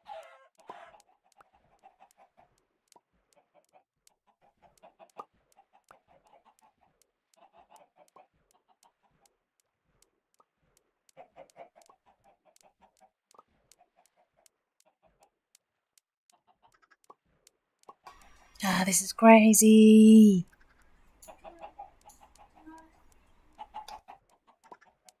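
Many chickens cluck softly in a crowd.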